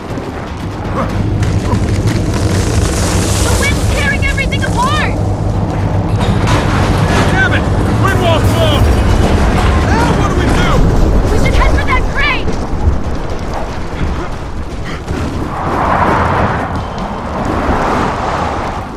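A strong wind roars and howls in gusts.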